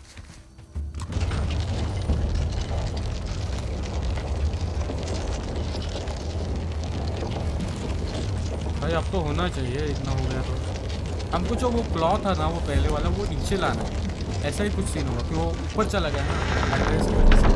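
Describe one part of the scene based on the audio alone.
A heavy wooden crate scrapes and grinds as it is pushed.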